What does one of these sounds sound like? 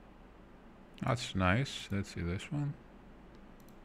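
A man speaks briefly and quietly, close to a microphone.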